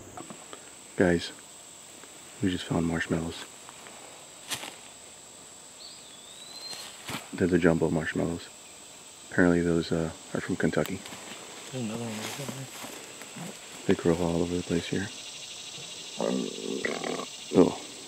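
A man talks nearby in short bursts, outdoors.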